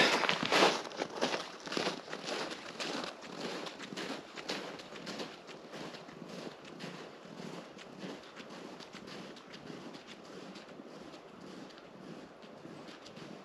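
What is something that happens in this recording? Footsteps crunch on snow, fading as the walker moves away.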